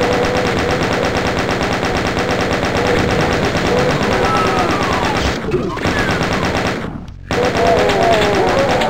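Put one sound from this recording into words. A rapid-fire gun rattles off shots in a fast, steady stream.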